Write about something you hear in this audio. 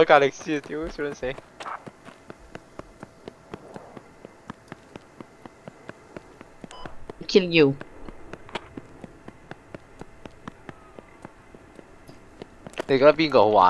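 Footsteps tread steadily on gravel and pavement.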